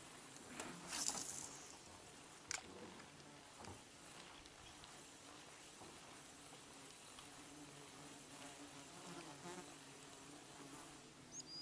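Water laps gently against the side of a boat.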